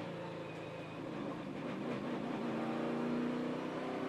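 Race cars roar past at high speed.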